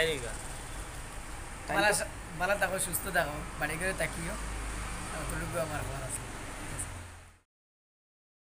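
A young man speaks close by, with a lively tone.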